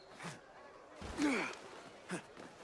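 A person lands hard with a heavy thud.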